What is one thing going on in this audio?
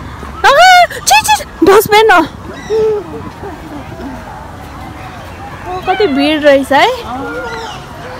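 A young girl squeals and shouts excitedly close by.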